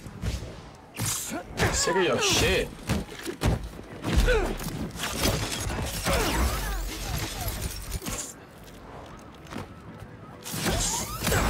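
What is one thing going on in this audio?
A young man talks excitedly into a microphone close by.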